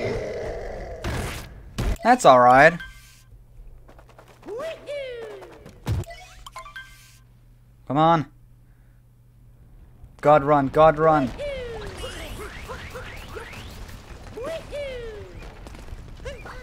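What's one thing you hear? Short pitched video game sound effects chirp and whoop.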